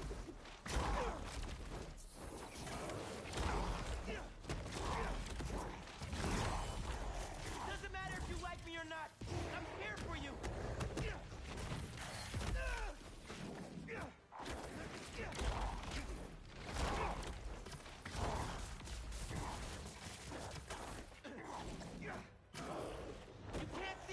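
Heavy blows and crashes land again and again in a fight.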